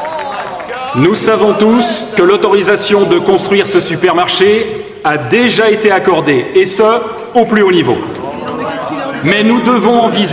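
A man speaks forcefully into a microphone, addressing a room.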